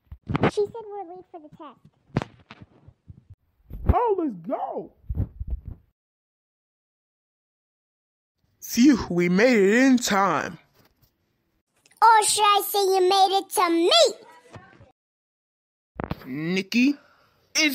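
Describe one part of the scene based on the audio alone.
A boy speaks in a synthetic computer voice.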